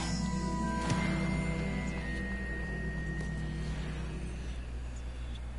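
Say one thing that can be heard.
A magical barrier hums and shimmers.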